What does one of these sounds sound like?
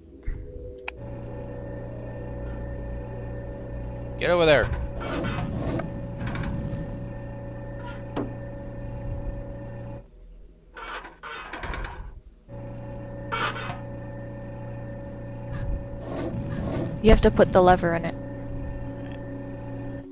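A machine hums steadily, stopping briefly now and then.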